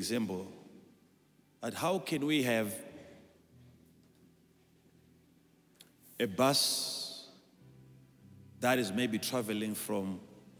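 A man speaks with emphasis into a microphone in a large hall, with pauses between phrases.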